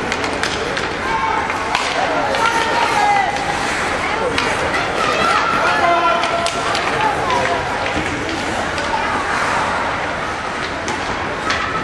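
Young children shout and call out in a large echoing rink.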